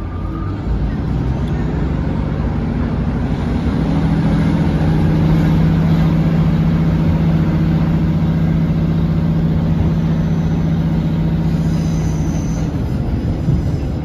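A train's engine hums low and steadily, growing louder as the train speeds up.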